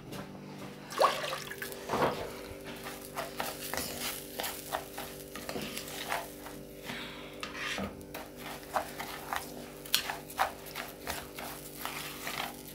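Rice sizzles and crackles in a hot frying pan.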